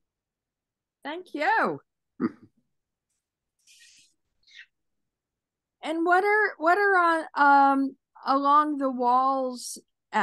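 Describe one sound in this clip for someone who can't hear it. An elderly woman speaks with animation over an online call.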